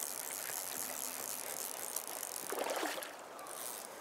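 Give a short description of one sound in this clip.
A fish splashes at the water's surface.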